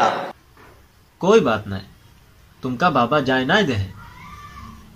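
A young man speaks with animation, close to the microphone.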